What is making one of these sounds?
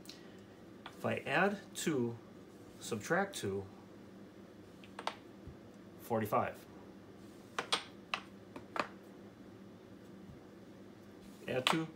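Plastic game pieces click as they are slid and set down on a wooden board.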